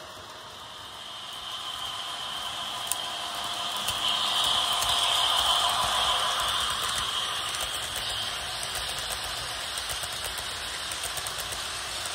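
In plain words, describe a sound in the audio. A model train rumbles and clatters along the tracks, growing louder as it passes close by.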